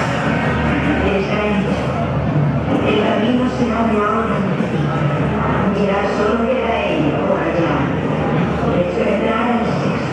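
A man speaks into a microphone, amplified through loudspeakers.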